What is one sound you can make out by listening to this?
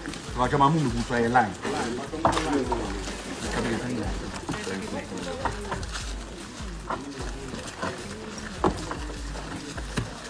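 Men talk and chatter nearby in a crowd.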